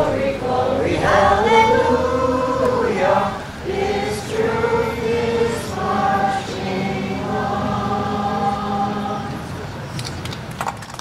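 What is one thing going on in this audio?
A group of people sings together outdoors.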